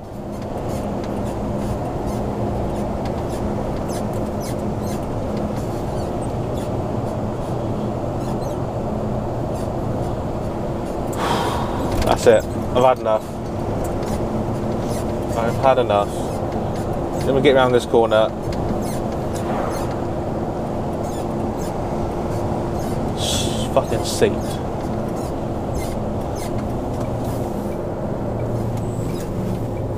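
A lorry engine hums steadily as the vehicle drives along.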